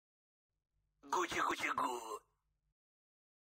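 A cartoon character babbles in a high, squeaky voice.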